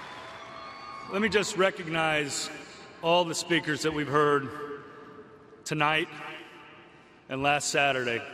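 A man speaks calmly and with emotion through a microphone over loudspeakers.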